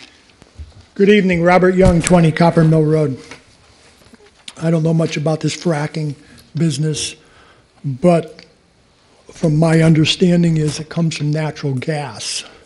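A middle-aged man speaks firmly into a microphone, with a slight echo of a large room.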